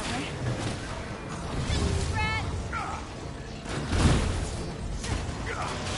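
Energy weapons blast and crackle in a game battle.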